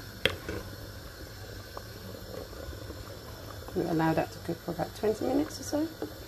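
A wooden spoon stirs and scrapes a pot of simmering soup.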